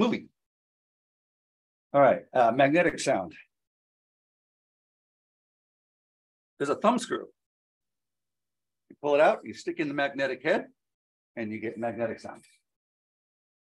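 A man talks calmly in bursts through an online call, with pauses.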